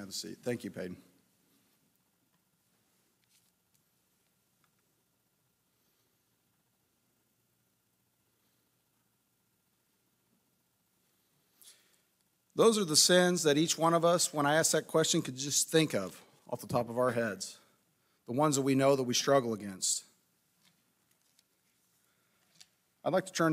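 A man speaks calmly into a microphone, heard through loudspeakers in an echoing hall.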